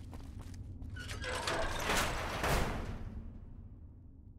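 A heavy metal door grinds open with a loud rumble.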